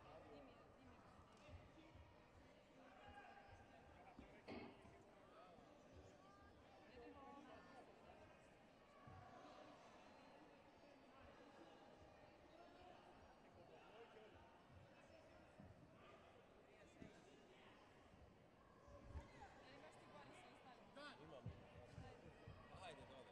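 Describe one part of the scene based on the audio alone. Men and women call out and chatter in a large echoing hall.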